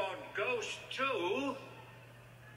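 A man's voice plays through a small laptop speaker.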